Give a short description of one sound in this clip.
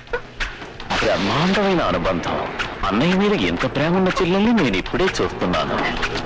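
A man speaks forcefully, close by.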